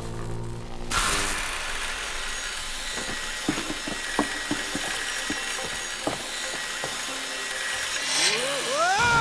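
An electric saw motor whirs steadily.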